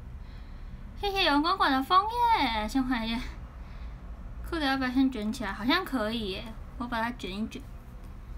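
A young woman speaks close to a microphone in a bright, animated voice.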